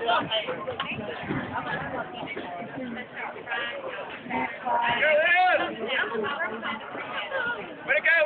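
A crowd of people chatter and shout outdoors.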